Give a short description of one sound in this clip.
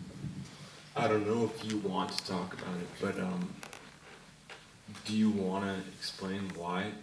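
A second man answers over a microphone.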